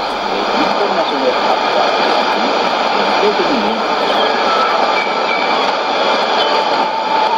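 A radio loudly hisses and crackles with static from a weak station.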